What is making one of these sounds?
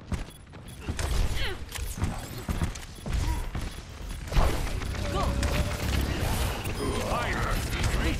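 Energy weapon blasts fire in rapid bursts.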